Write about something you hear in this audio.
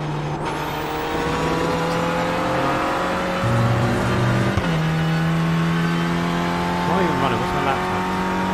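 A racing car engine roars, rising in pitch and dropping briefly at each gear change.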